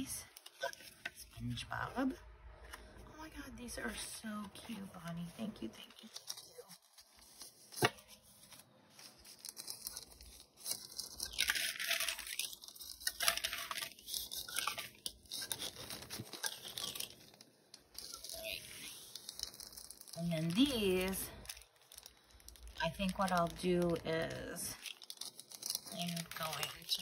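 Paper cards rustle and crinkle as they are handled.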